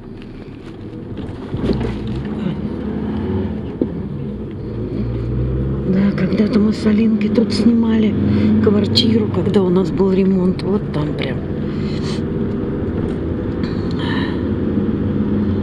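Tyres roll over the road.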